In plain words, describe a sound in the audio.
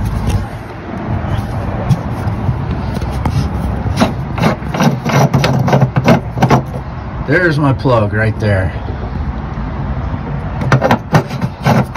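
A metal cap scrapes and clicks as a hand twists it.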